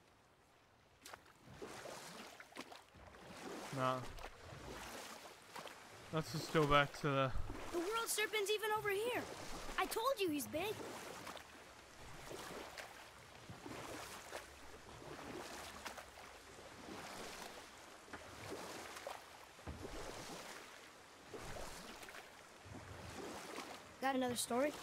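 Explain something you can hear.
Oars splash and paddle through water.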